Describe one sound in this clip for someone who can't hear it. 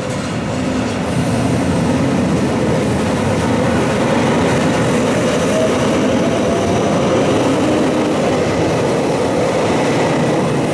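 A train rumbles and rattles past close by, its wheels clattering on the rails.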